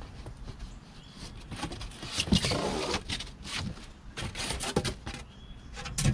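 Cardboard flaps rustle and thump as a box is opened.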